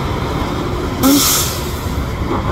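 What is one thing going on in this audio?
Bus air brakes hiss sharply.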